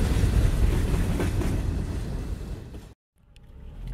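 A freight train rumbles and clatters past.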